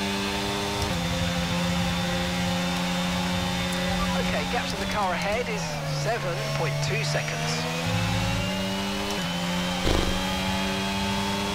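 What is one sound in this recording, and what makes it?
A racing car engine roars at high revs, dropping in pitch through a series of quick gear shifts as the car brakes, then climbing again.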